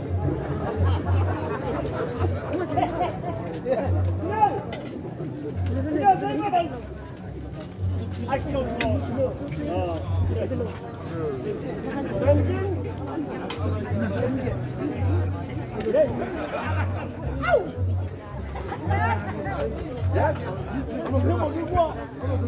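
A large crowd of men and women chatters outdoors.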